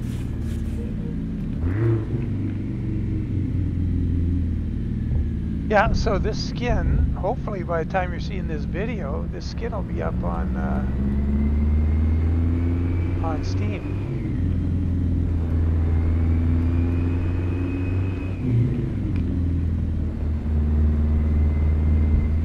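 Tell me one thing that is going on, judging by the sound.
A heavy truck engine rumbles steadily, its pitch rising and falling as gears change.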